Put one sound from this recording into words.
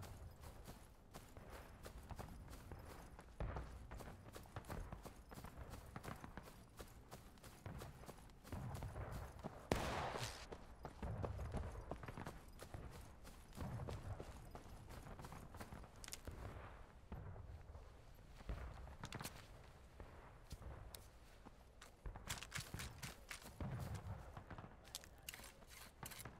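Footsteps rustle through dry grass and brush.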